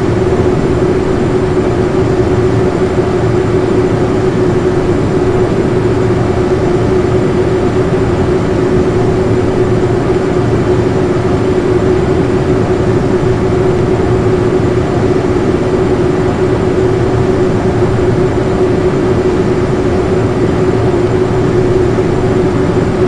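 Jet engines hum and roar steadily as an airliner taxis.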